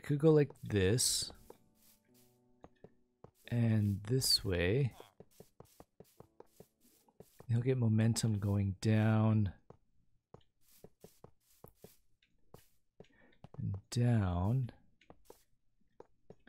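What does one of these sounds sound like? Footsteps pad softly across grass.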